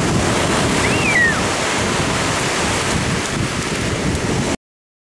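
Waves break and wash onto the shore.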